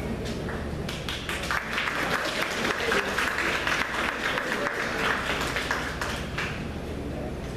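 A group of young women clap their hands in rhythm.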